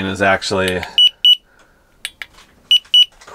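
A handheld thermometer beeps twice in short, high electronic tones.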